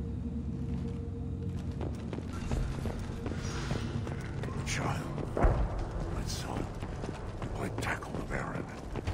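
Heavy armoured footsteps crunch over rubble and stone.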